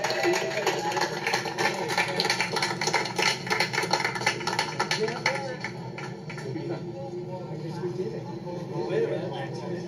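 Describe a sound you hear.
A crowd chatters in a busy open space.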